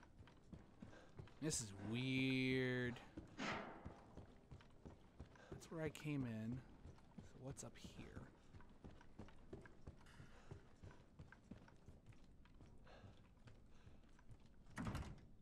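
Footsteps tap along a hard floor in an echoing corridor.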